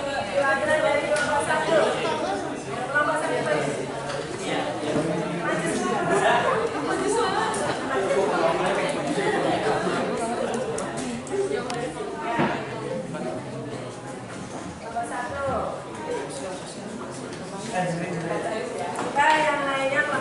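Many young students chatter loudly in an echoing room.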